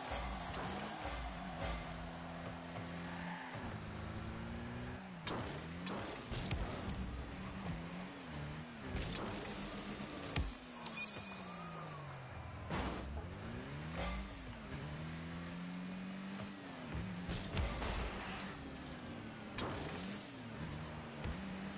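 A video game's car engine hums and whines as the car drives and boosts.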